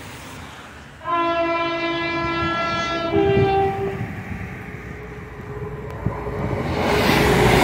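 Wind gusts outdoors, growing stronger.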